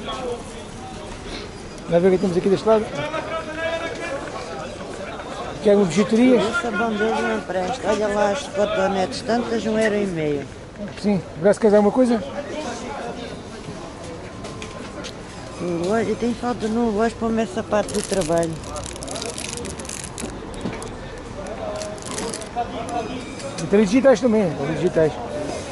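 A crowd murmurs in the background outdoors.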